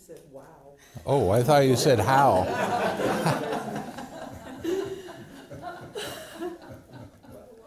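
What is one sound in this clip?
An elderly man laughs heartily.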